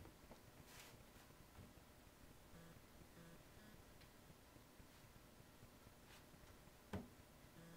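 A small iron scrapes softly across stiff fabric.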